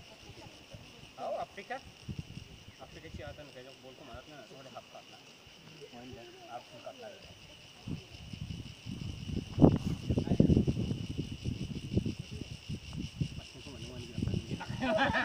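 Young people talk casually nearby outdoors.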